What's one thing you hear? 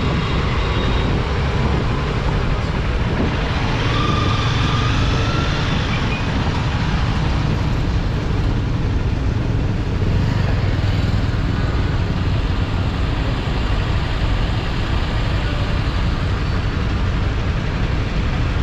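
Traffic hums in slow, busy traffic.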